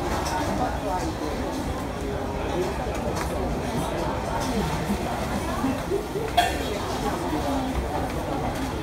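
Oil sizzles in a wok as food fries.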